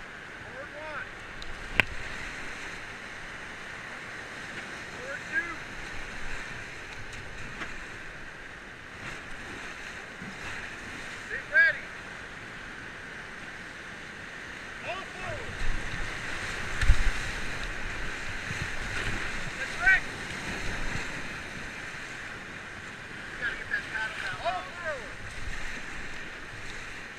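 Paddles splash in rushing water.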